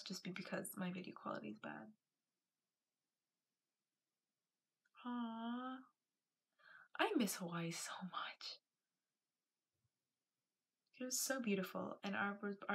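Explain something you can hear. A young woman talks close to a microphone, with animation.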